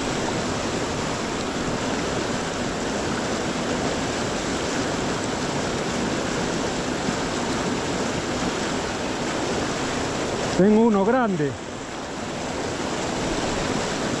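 A fast stream rushes and splashes over rocks, loud and steady.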